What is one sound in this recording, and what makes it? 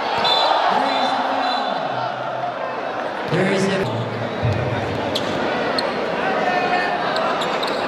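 A basketball bounces on a wooden court.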